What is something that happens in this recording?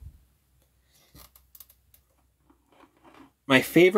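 Plastic toy parts click and tap as they are handled.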